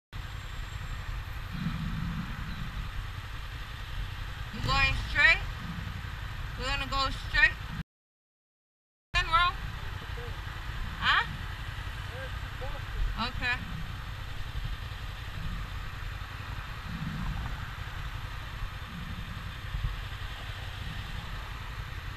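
A motorcycle engine idles with a low rumble.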